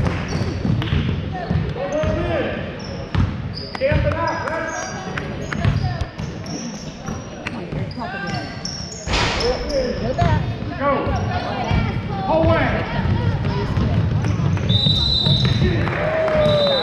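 A basketball bounces on a hardwood floor in a large echoing gym.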